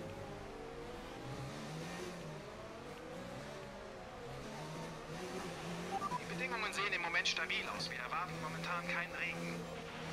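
A racing car engine drones and whines as the car speeds up.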